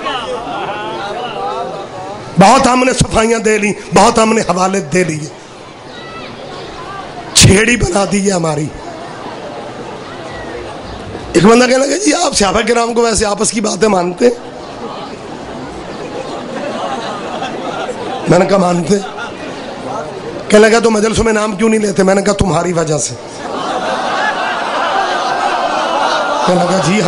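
A man speaks passionately into a microphone through loudspeakers, in bursts of loud, forceful phrases.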